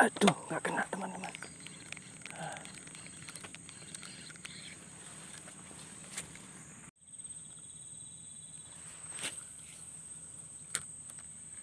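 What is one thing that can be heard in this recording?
Hands rub and knock against a fishing reel close by.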